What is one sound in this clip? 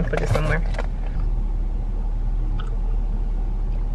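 A young woman sips a drink.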